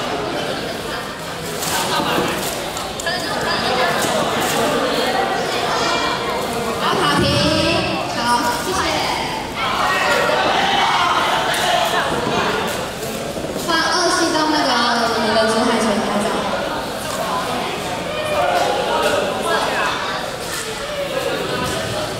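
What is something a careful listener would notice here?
Brooms sweep confetti across a hard floor.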